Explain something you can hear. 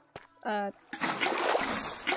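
Water splashes and flows out of a bucket.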